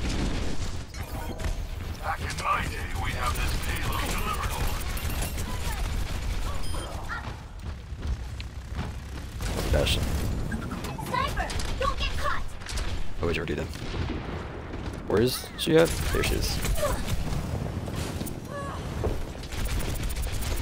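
Rapid gunfire crackles from a game weapon.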